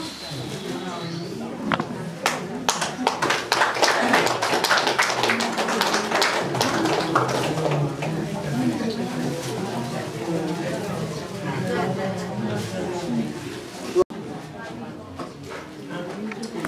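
Several men and women chatter in the room.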